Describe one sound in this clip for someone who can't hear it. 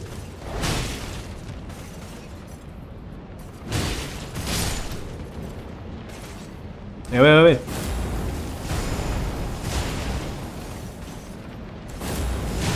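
A sword swings and whooshes through the air.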